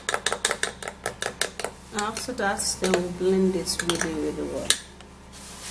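A spoon clinks rapidly against a glass bowl while stirring a thick mixture.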